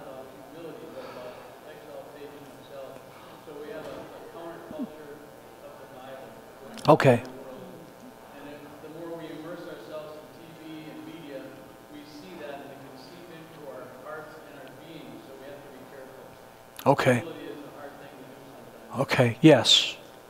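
A middle-aged man speaks calmly to a group, somewhat distant.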